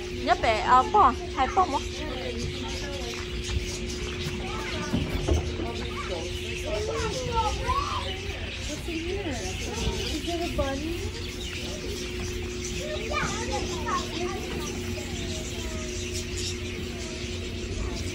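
An elderly woman talks softly nearby.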